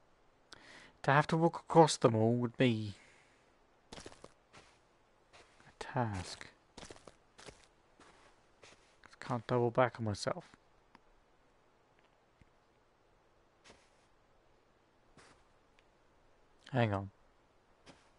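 A man speaks in short bursts, heard close through a microphone.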